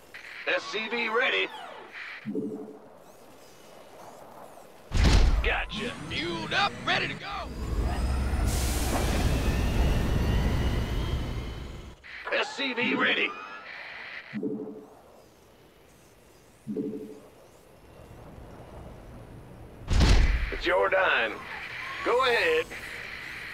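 Short electronic game sound effects blip and whir.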